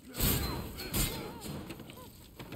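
Fire bursts and crackles with sharp blasts.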